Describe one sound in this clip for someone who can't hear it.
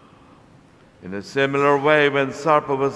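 A man chants through a microphone in a large echoing hall.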